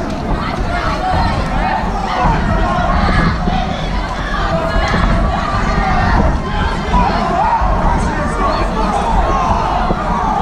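Punches thud against padded gloves and bodies.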